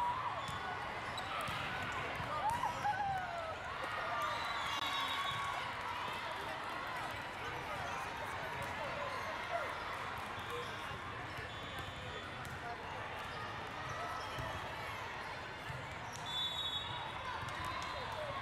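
Shoes squeak sharply on a hard court floor in a large echoing hall.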